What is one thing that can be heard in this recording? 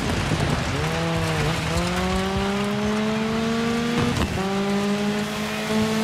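A rally car engine revs hard, rising in pitch through the gears.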